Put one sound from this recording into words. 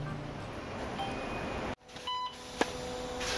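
A ticket machine beeps as its buttons are pressed.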